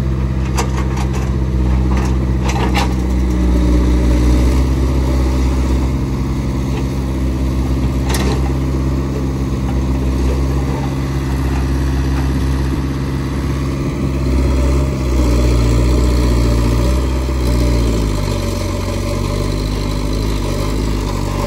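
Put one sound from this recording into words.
A diesel excavator engine rumbles steadily nearby, its pitch shifting as it works.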